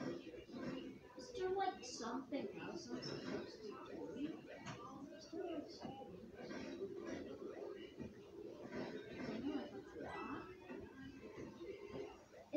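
Video game sounds play from a television nearby.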